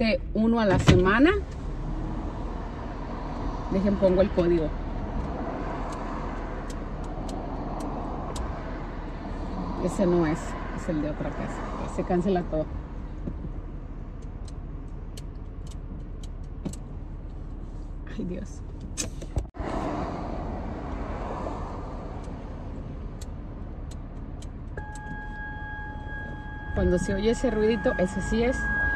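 A car's engine and tyres rumble steadily on the road.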